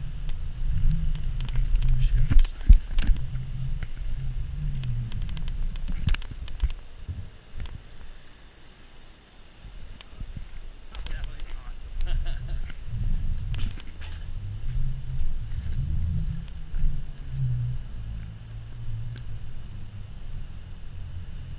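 Bicycle tyres roll over pavement with occasional rattles.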